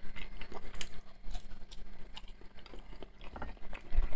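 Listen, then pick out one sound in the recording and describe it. A man chews food with soft, wet sounds.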